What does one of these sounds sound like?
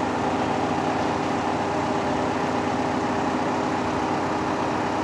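A crane's engine hums steadily as its hydraulic boom raises.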